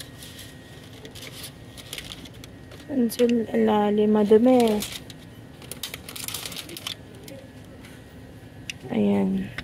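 Plastic egg cartons crinkle and rattle as they are handled.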